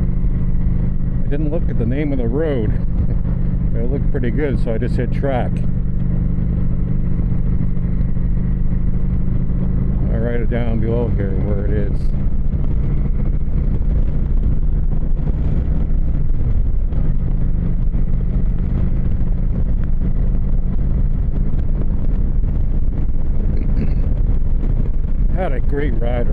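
A motorcycle engine drones steadily while riding along a road.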